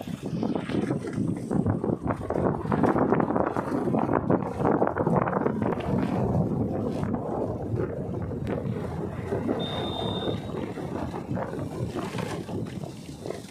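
Tyres roll over a rough gravel road.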